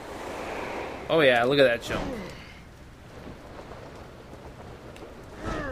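Wind rushes past during a long fall through the air.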